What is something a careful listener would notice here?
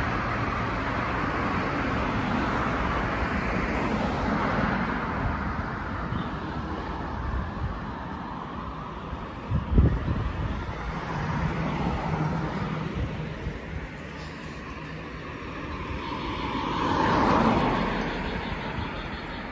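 Cars swish past on a nearby road, one after another.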